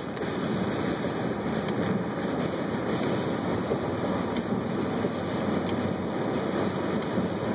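Tyres hiss steadily on a wet road.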